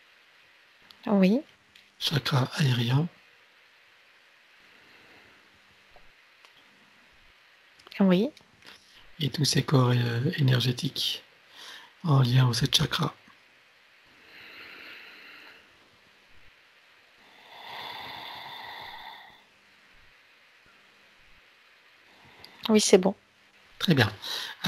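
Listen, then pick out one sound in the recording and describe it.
A man speaks calmly and warmly through an online call, in short bursts with pauses.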